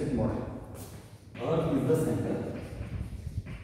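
A man speaks calmly, as if teaching.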